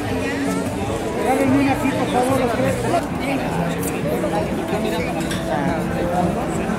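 A crowd chatters loudly all around in a large echoing hall.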